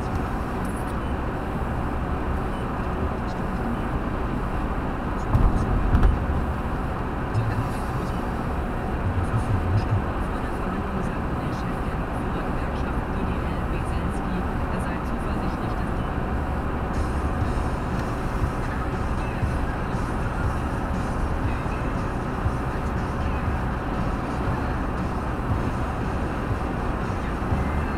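Tyres roar steadily on a wet road.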